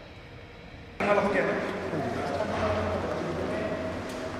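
Men talk as they walk along an echoing corridor.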